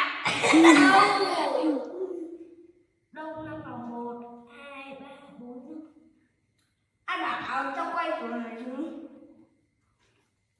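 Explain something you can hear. A young boy talks with animation close by, in short bursts.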